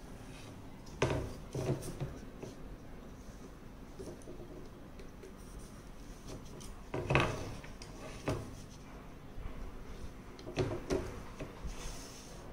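Plastic rulers knock and clatter against a drawing board.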